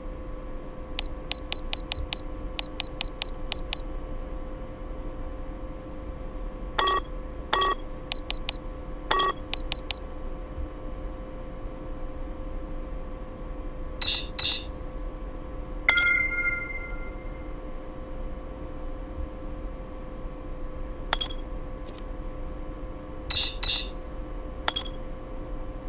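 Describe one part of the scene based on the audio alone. Short electronic menu blips tick in quick runs.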